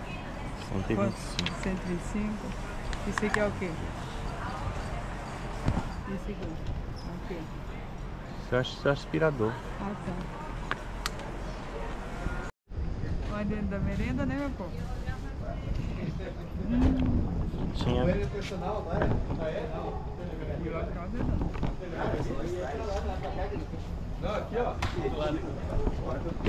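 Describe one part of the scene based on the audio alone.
A middle-aged man talks casually close to the microphone.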